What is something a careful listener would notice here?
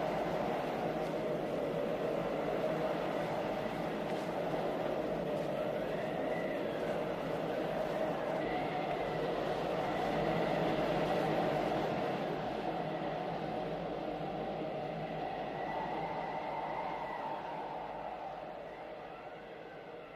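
Strong wind howls steadily outdoors in a storm, fading at the end.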